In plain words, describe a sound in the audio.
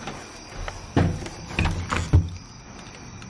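A key rattles and clicks in a door lock.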